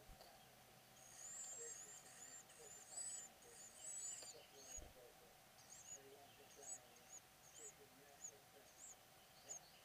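Nestling birds cheep shrilly and rapidly, begging for food.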